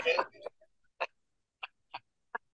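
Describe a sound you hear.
A middle-aged man laughs in short bursts over an online call.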